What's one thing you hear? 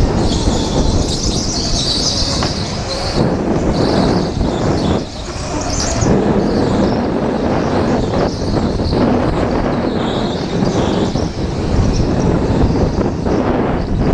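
Go-kart engines buzz and whine loudly close by.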